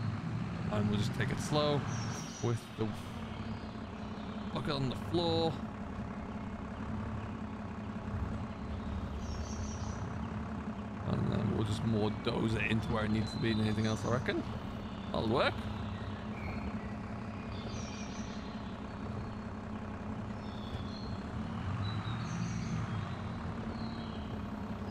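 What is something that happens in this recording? A tractor engine idles with a low, steady rumble.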